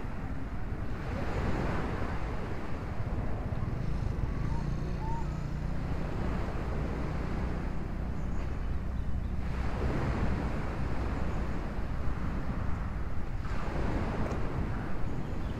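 Gusts of wind rustle the leaves of trees.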